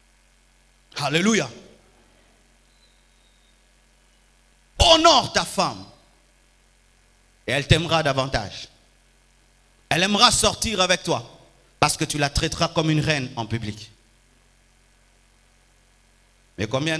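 A man preaches with animation into a microphone, in short bursts separated by pauses.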